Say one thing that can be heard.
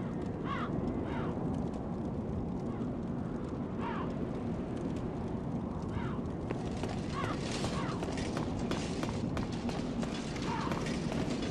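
Armoured footsteps clank quickly on stone.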